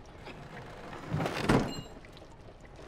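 A wooden drawer scrapes open.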